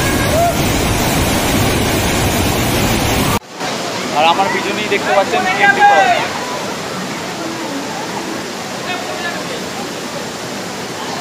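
A waterfall roars loudly close by.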